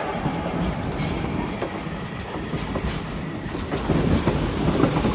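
A steam train's wheels rumble and clatter over the rail joints.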